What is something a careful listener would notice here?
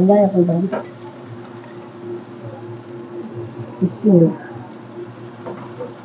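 Liquid pours into a sizzling pan.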